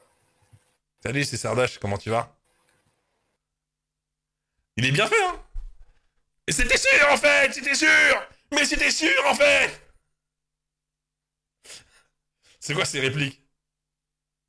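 A man talks loudly and with animation close to a microphone.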